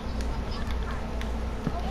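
Water flows and trickles.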